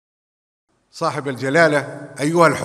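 A man speaks into a microphone in a formal tone.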